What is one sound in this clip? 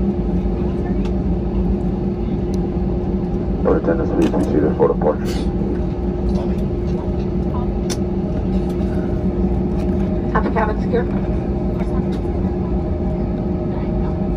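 A jet airliner's engines hum and whine steadily from inside the cabin.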